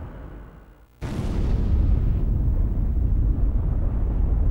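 An aircraft crashes into a mountain with a heavy explosion.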